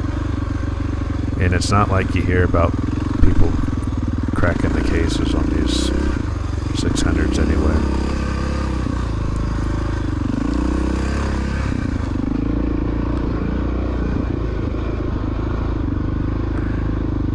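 Tyres crunch over a muddy dirt track.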